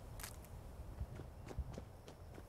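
Footsteps thud on stone steps.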